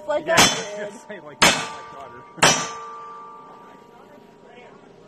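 A metal target rings after being hit.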